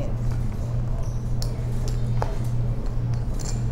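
Poker chips click together on a table.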